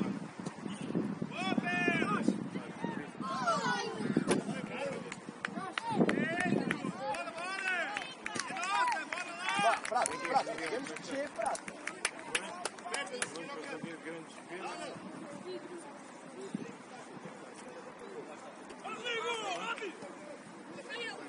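Young players shout across an open outdoor pitch.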